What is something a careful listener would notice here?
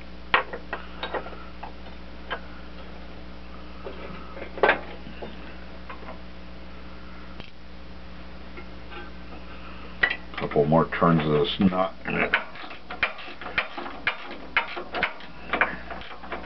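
Metal tools clink and tap against metal parts.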